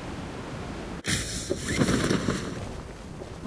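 A parachute opens with a sudden whoosh.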